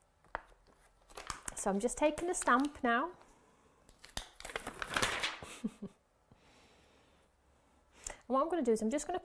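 A thin plastic sheet crinkles and rustles as hands handle it.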